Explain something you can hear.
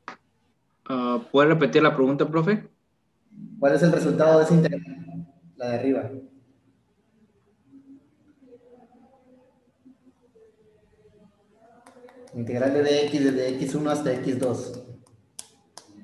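A young man speaks calmly through an online call.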